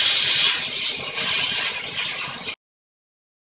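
An aerosol spray hisses in short bursts close by.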